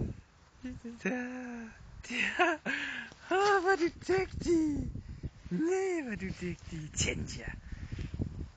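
A dog whines and yelps close by.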